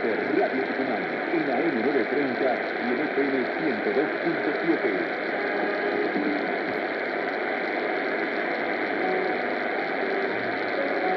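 A portable radio plays a distant AM station through heavy static.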